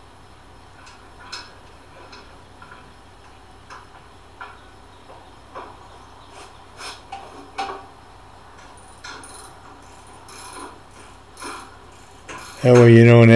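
Metal parts click and clink softly.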